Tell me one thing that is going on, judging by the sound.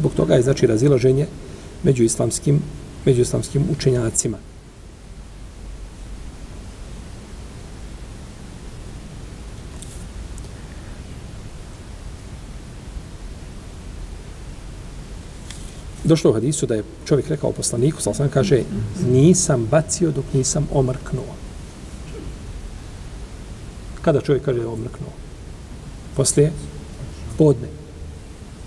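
An elderly man speaks calmly and steadily, close to a microphone, with pauses.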